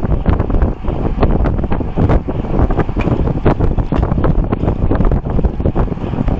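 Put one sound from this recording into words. Wind rushes and buffets loudly past a fast-moving bicycle.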